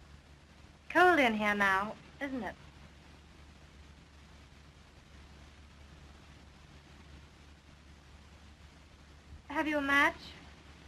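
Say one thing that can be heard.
A young woman speaks lightly and brightly, close by.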